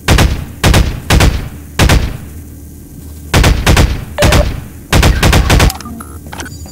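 A gun fires loud single shots with echoing booms.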